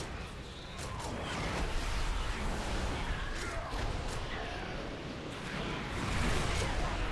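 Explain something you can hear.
Magic spells crackle and whoosh in a fast fantasy battle.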